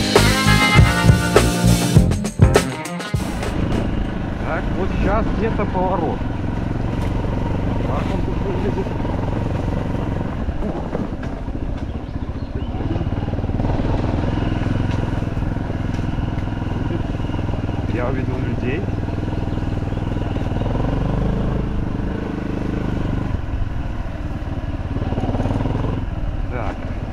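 A motorbike engine rumbles steadily.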